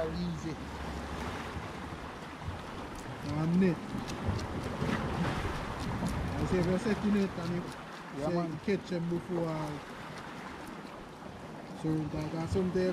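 Waves wash against rocks close by.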